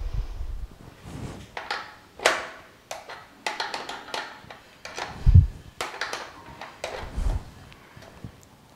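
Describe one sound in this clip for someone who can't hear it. Metal parts clink and scrape as a hand handles a gas stove's fittings.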